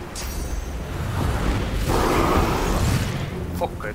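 A fiery blast bursts loudly.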